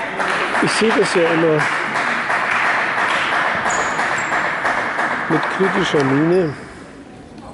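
A crowd applauds in a large echoing hall.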